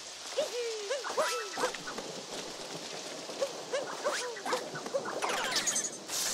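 Quick bouncy video game sound effects chirp and boing in bursts.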